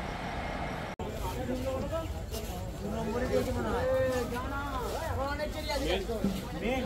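A crowd of men chatters outdoors nearby.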